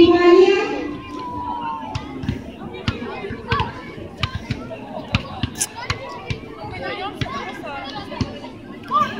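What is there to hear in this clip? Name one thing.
Children shout and cheer.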